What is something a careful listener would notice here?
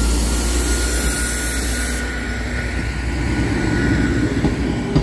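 A level crossing alarm sounds with a steady tone.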